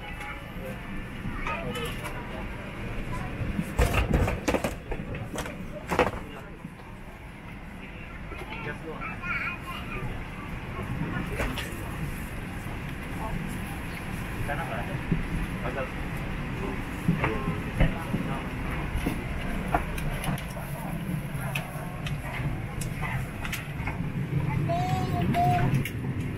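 Passengers murmur and shuffle as they board an airliner cabin.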